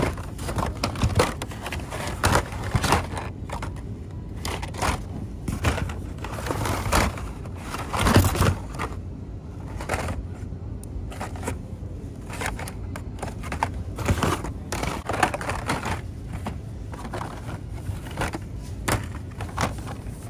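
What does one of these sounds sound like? Plastic toy packages rustle and clatter as a hand digs through them.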